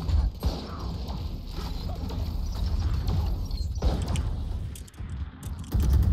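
Rapid gunshots fire in a short burst.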